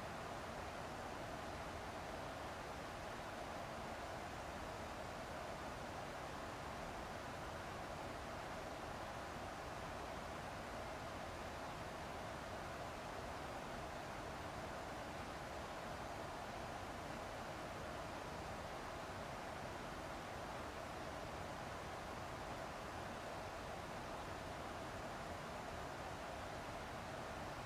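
A jet airliner's engines and rushing air drone steadily inside the cockpit.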